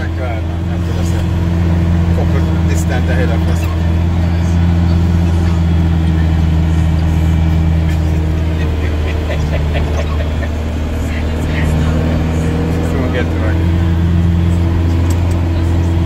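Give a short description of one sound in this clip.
A vehicle engine drones steadily from inside the cab.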